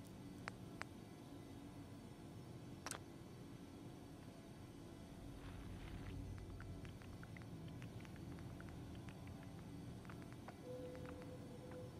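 Short interface clicks and beeps sound as menu options are selected.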